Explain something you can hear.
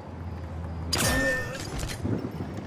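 A silenced pistol fires a single muffled shot.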